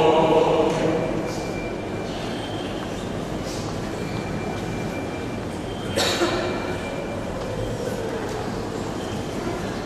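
Men chant slowly together in a large echoing hall.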